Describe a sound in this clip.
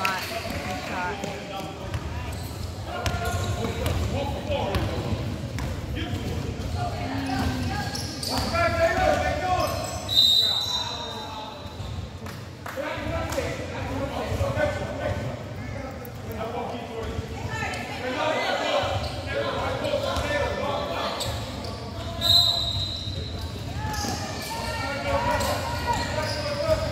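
Young players shout and call out across a large echoing gym.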